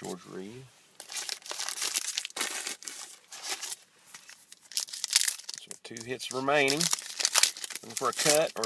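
A plastic wrapper crinkles and rustles.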